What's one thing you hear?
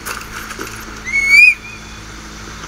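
A man whistles sharply once.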